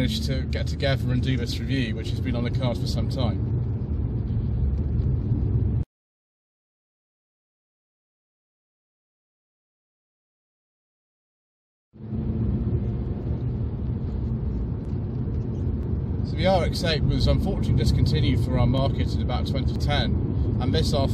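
A man talks calmly and close through a clip-on microphone.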